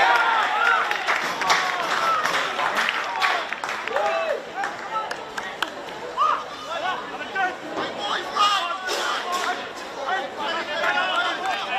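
Young men shout and cheer excitedly outdoors.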